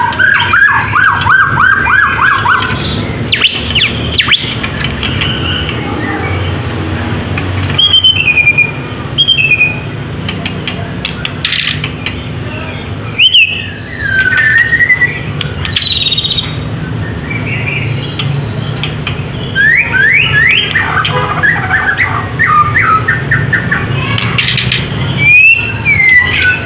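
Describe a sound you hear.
A songbird sings loud, varied whistles and rapid trills close by.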